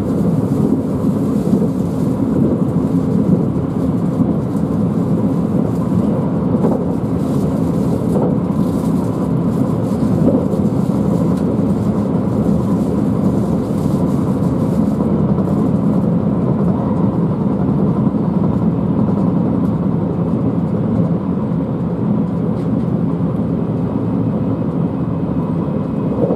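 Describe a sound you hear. A train rumbles steadily along the rails, heard from inside a carriage.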